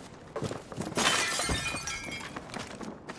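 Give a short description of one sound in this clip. Glass shatters and tinkles as it breaks.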